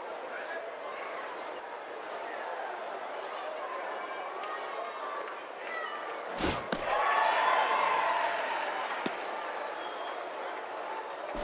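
A large crowd murmurs steadily in the stands.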